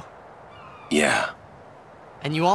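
A man answers briefly in a low, calm voice.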